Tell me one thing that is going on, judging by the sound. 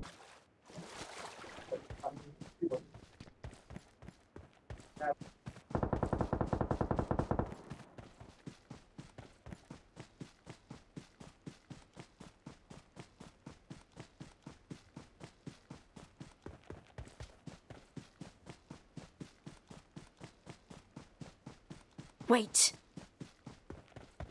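Footsteps run quickly and steadily over grass.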